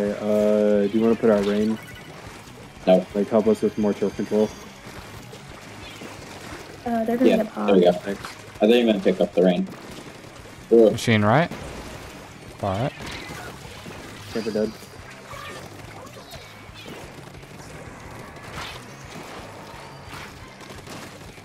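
Ink guns fire in quick bursts and splatter wetly.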